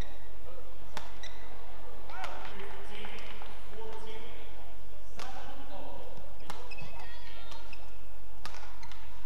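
Rackets strike a shuttlecock in a quick rally, with sharp pops echoing in a large hall.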